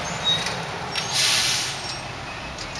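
Air brakes on a garbage truck hiss sharply.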